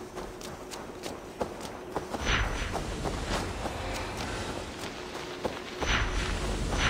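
Wind blows through grass outdoors.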